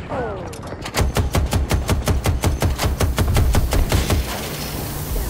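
A machine gun fires a long rapid burst.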